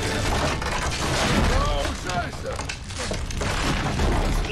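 Debris crashes and clatters as it falls.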